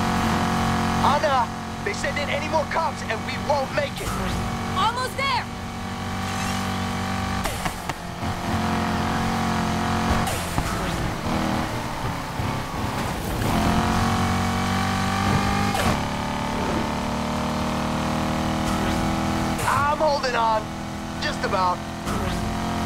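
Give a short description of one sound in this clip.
Tyres squeal as a car drifts through bends.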